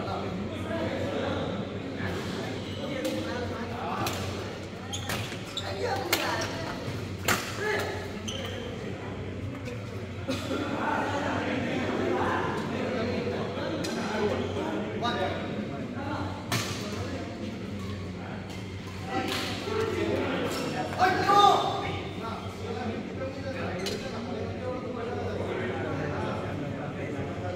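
Rackets hit shuttlecocks with sharp pops in a large echoing hall.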